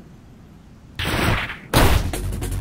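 A large creature roars loudly.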